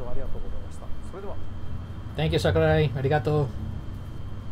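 A man speaks calmly, heard through a loudspeaker.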